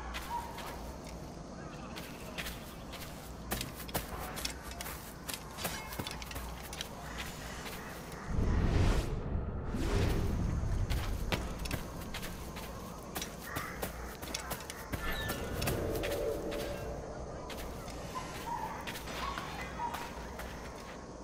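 Footsteps crunch through grass and dirt.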